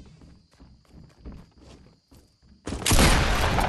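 Footsteps thud quickly on a wooden floor.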